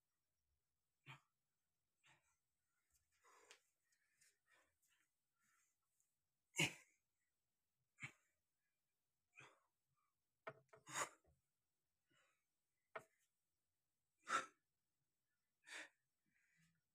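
A man exhales sharply while exercising.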